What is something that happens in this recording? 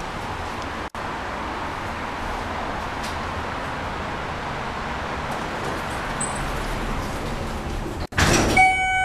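An elevator hums steadily as it rides up.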